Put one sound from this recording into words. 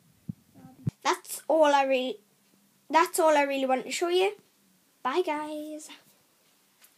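A young girl talks with animation close to the microphone.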